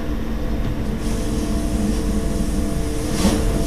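A train's roar grows louder and echoes as the train enters a tunnel.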